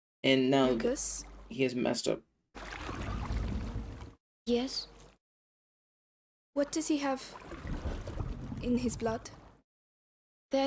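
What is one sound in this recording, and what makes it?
A young woman speaks quietly and anxiously, close by.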